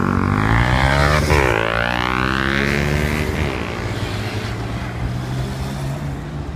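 A motorcycle engine revs loudly and roars past close by.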